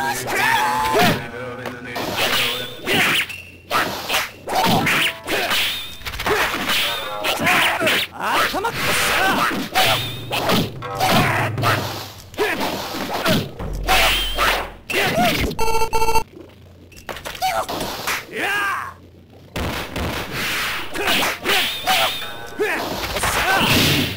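Swords slash and clang in quick, sharp strikes.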